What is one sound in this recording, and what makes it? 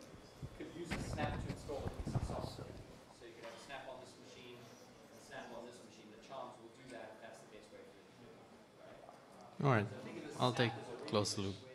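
A man speaks calmly through a microphone in a large room.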